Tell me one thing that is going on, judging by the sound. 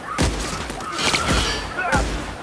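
An explosion bursts with a loud boom.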